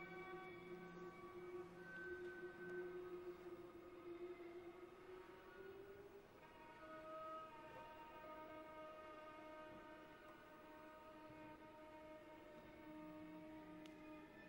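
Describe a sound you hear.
A violin plays long, held notes.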